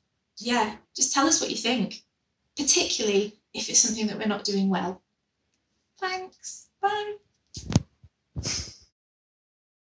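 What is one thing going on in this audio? A woman speaks warmly and cheerfully, close to a microphone.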